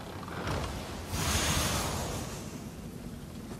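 A chest bursts open with a bright, shimmering chime.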